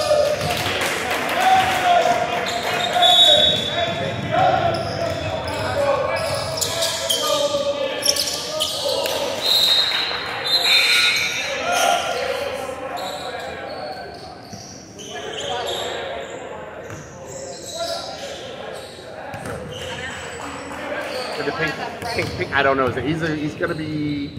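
Sneakers squeak on a wooden floor in a large echoing hall.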